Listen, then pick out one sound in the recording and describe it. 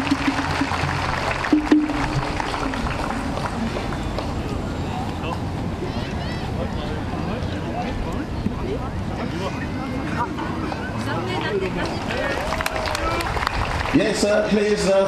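Drums beat outdoors.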